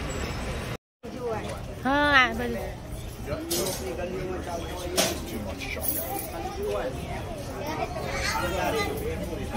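Crowds of people chatter nearby, outdoors.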